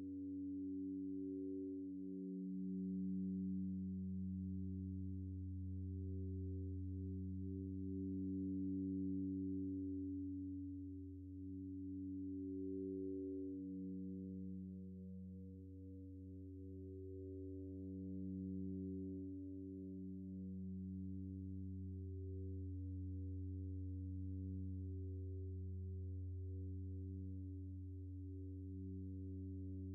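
A modular synthesizer plays a low, droning sequence of shifting notes.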